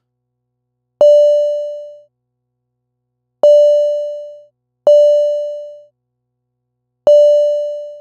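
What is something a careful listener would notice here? A synthesizer plays short, bright plucked notes that ring and fade.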